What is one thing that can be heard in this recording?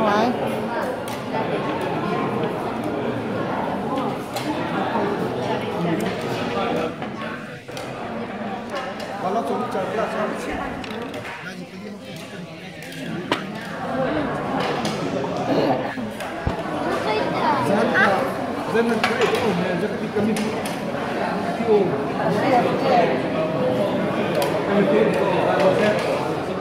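A busy room hums with many people chatting all around.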